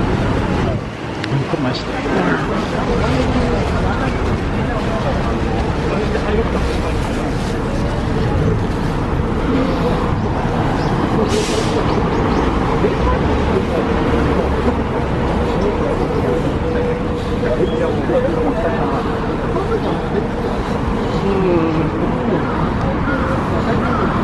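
Traffic passes on a nearby road.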